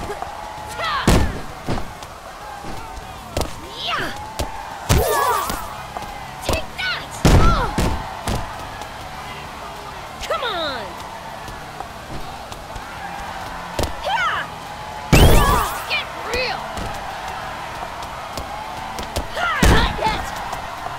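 Heavy thuds sound as bodies slam onto a mat.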